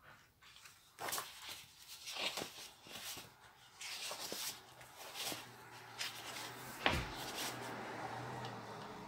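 Stiff paper rustles and slides against a table.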